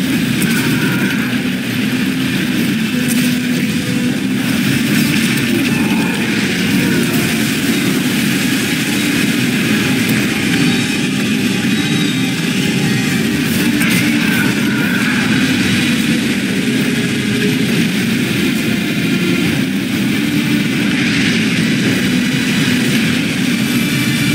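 A small boat rushes through choppy water.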